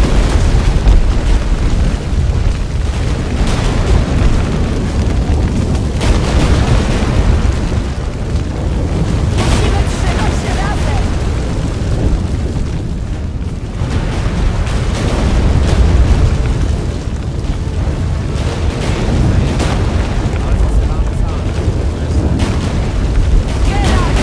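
Footsteps run quickly over earth and grass.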